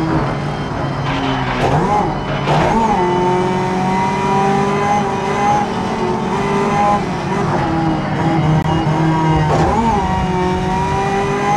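Tyres screech through a tight corner.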